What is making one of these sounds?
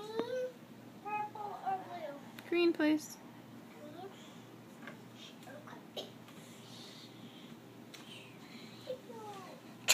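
A young girl sings and squeals playfully nearby.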